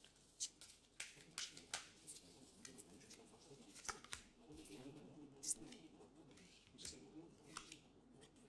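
Playing cards shuffle and flick softly.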